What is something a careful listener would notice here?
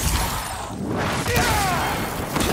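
Electricity crackles and zaps in loud bursts.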